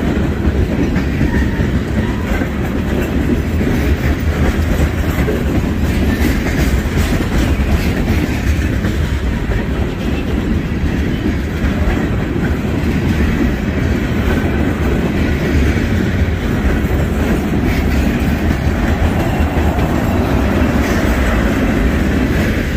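Steel wheels clatter and squeal on the rails.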